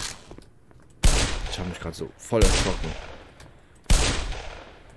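A pistol fires loud shots that ring out with a short echo.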